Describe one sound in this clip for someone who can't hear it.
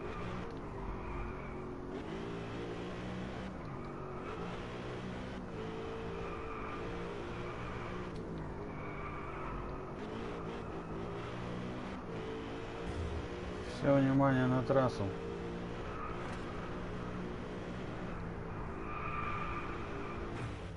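A V8 sports car engine revs hard while accelerating and shifting gears.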